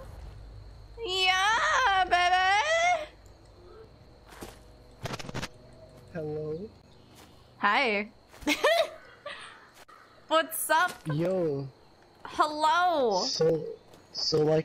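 A young woman talks and laughs with animation into a close microphone.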